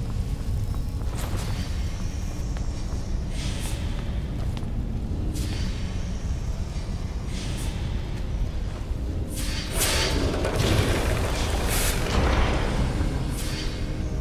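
A deep machine hum drones steadily.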